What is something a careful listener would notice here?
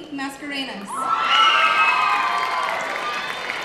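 A crowd cheers and whoops loudly in a large hall.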